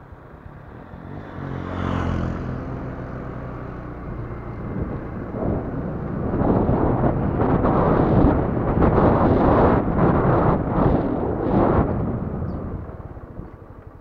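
Wind rushes and buffets loudly while riding along a road outdoors.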